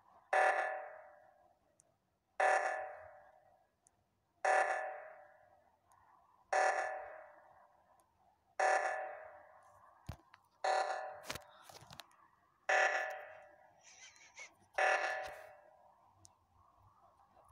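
An alarm blares in short, evenly spaced bursts that each fade away.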